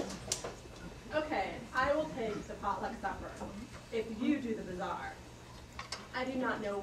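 A woman speaks aloud with expression, heard from a distance.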